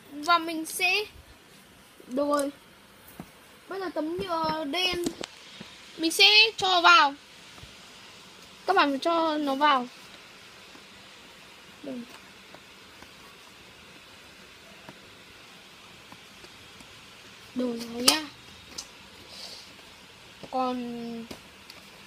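A young child talks close by with animation.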